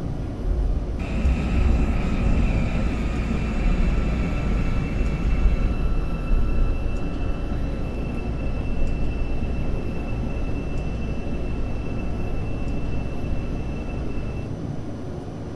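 A train's electric motor whines at an even pitch.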